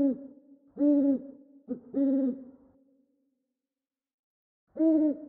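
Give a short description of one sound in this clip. An owl hoots in low, deep calls close by.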